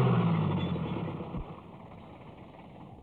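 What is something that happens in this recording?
A truck engine rumbles and fades away.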